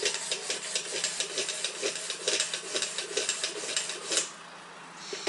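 A sharpening stone scrapes rapidly back and forth along a knife blade.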